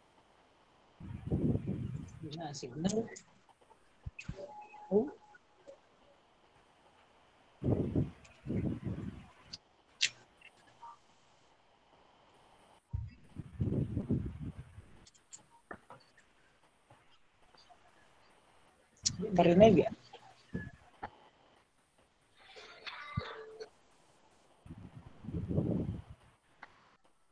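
A woman speaks calmly in short bursts over an online call.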